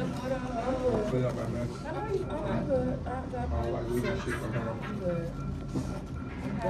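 Paper rustles as cards are handled.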